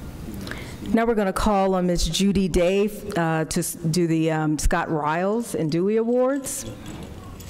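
A woman speaks calmly through a loudspeaker in a large echoing hall.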